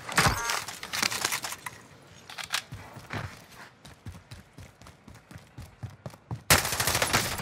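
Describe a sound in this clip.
Quick footsteps run on hard ground.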